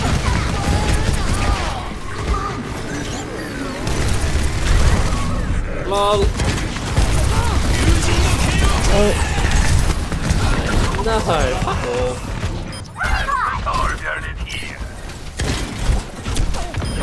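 Gunfire rattles rapidly and loudly.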